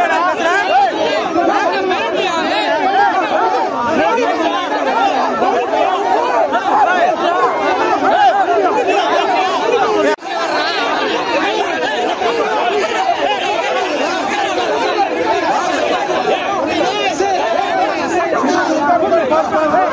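A dense crowd of men shouts and clamours loudly all around, close by.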